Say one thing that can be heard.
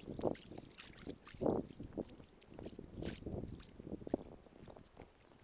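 Shallow water laps softly over sand.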